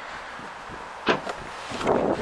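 A car's tailgate clicks open.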